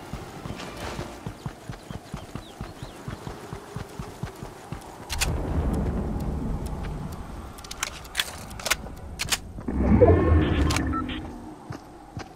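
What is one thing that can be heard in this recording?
A game character's footsteps patter quickly over the ground.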